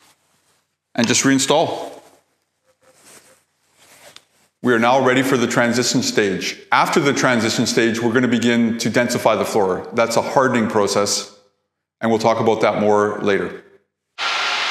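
A man speaks calmly and clearly up close.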